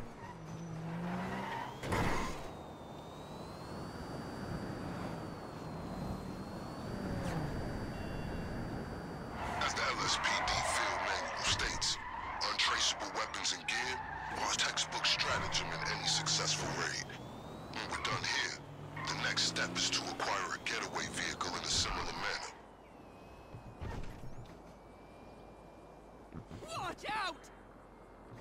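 A sports car engine revs and roars as it speeds along.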